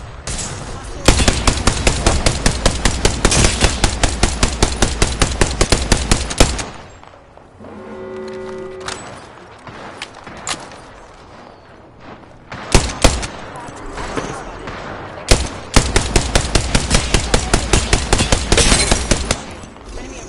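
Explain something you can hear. A rapid-fire gun shoots in fast bursts.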